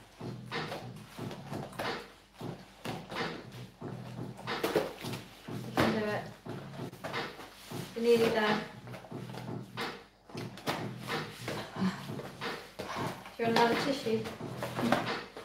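A second young woman speaks and laughs close by.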